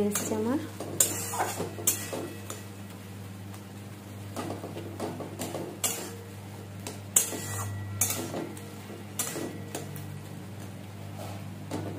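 A metal spatula scrapes and clatters against a pan.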